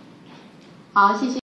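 A young woman speaks into a microphone over a loudspeaker.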